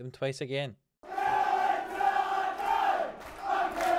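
A stadium crowd sings and chants loudly.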